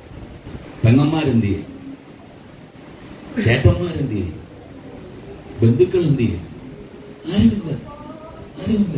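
A man preaches loudly through a microphone in bursts, with pauses between phrases.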